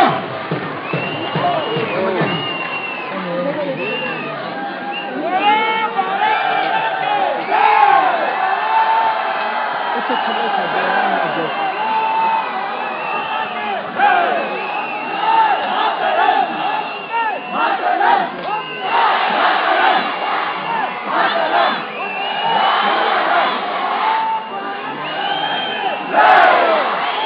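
A large crowd of men and women cheers and shouts loudly outdoors.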